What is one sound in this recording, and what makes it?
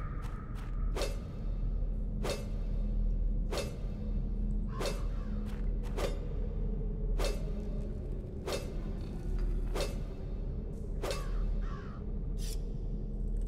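A pickaxe strikes rock with regular sharp blows.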